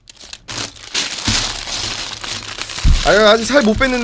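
A plastic bag crinkles and rustles.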